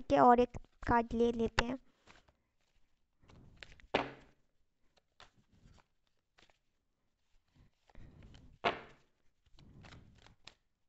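Cards rustle and flick as they are shuffled by hand.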